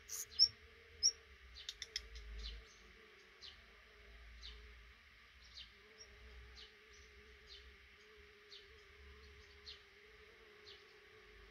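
Nestling birds peep softly now and then.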